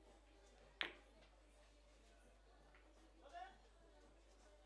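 Billiard balls knock together and roll on the table.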